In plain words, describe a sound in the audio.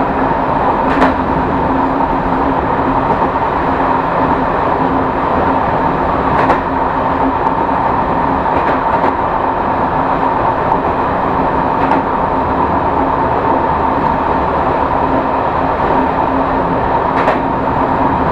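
Train wheels click over rail joints at intervals.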